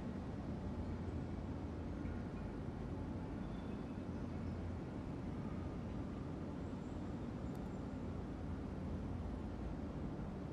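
A ceiling fan hums steadily.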